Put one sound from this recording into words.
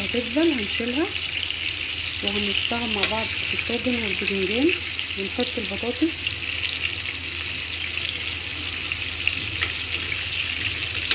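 A metal spoon scrapes against a frying pan.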